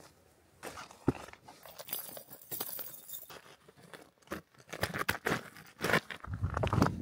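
Metal chains clink against a boot and rocks.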